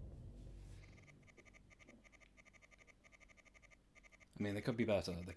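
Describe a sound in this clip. Quick electronic blips tick in a rapid, even rhythm.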